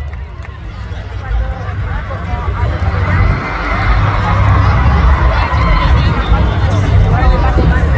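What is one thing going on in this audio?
Loud music with heavy bass booms from big outdoor speakers.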